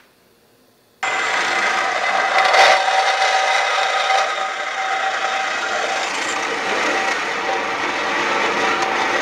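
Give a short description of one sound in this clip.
A band saw whines as it cuts through metal tubing.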